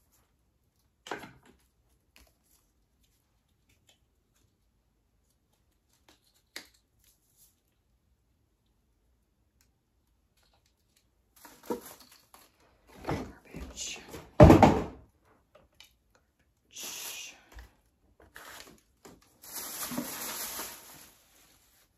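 Plastic toys clatter and rattle as they are sorted.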